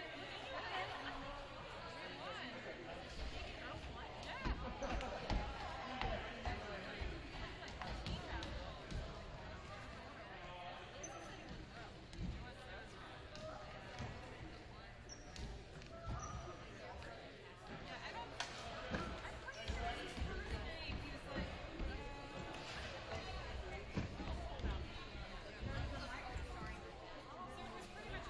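A crowd of men and women chatter in a large echoing hall.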